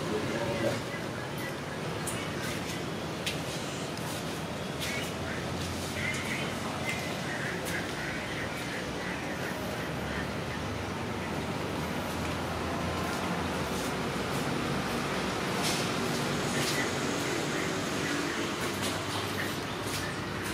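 Cats chew and lap food from a plate close by.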